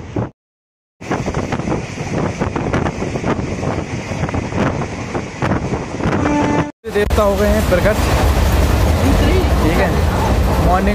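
A train rumbles and clatters along the tracks.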